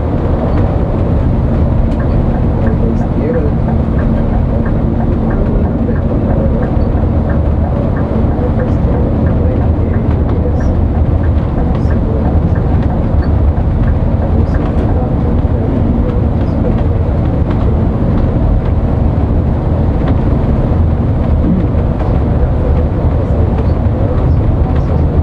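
A large vehicle's engine hums steadily.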